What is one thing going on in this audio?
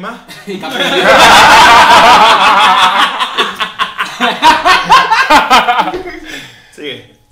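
Several young men laugh loudly together close by.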